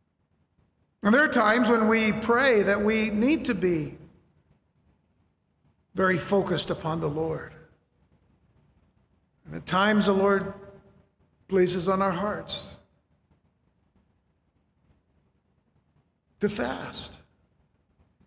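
A middle-aged man speaks with animation into a microphone, with long pauses.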